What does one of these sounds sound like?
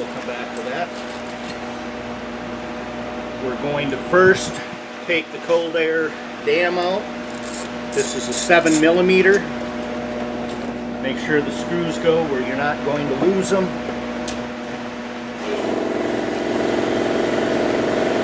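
Metal tools clink against an engine.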